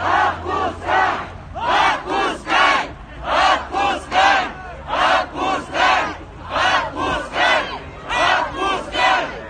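A large crowd chants loudly in a steady rhythm outdoors.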